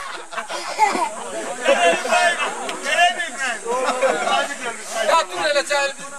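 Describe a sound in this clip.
Several men sing together loudly outdoors.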